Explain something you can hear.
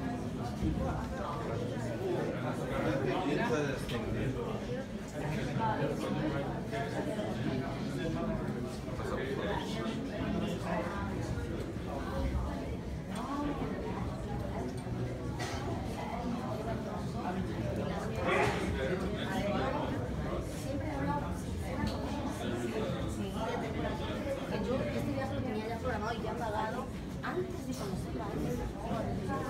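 A crowd of adult visitors chatters nearby in an echoing corridor.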